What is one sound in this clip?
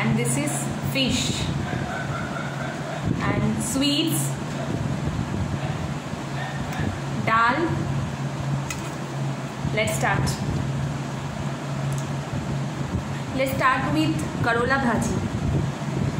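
A young woman talks with animation, close to the microphone.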